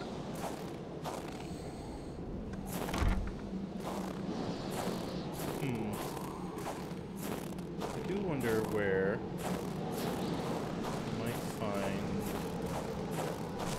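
Strong wind blows steadily outdoors.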